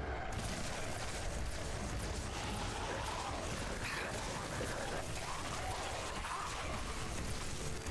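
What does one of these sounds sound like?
A game weapon fires a roaring stream of flame.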